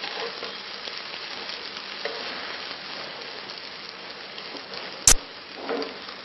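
A metal spatula scrapes in a frying pan.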